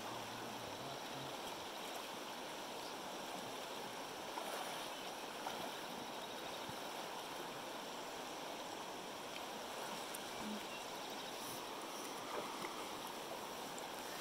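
Water splashes around a man's legs as he wades.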